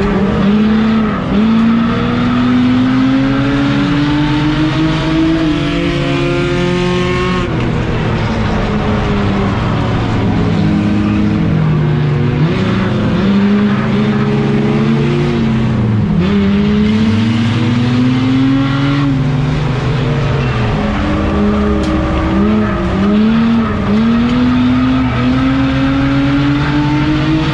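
A race car engine revs up and down through the gears, heard from inside the stripped car.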